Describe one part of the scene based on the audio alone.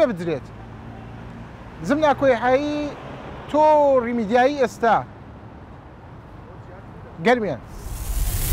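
A man speaks calmly and clearly into a microphone outdoors.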